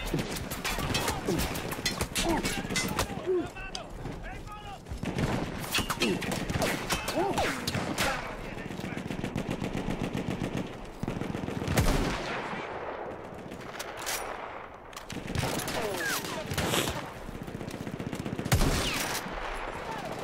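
Gunshots crack from a game.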